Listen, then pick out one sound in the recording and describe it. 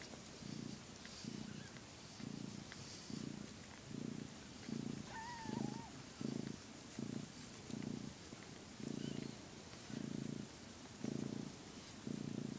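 A cat purrs loudly and rhythmically up close.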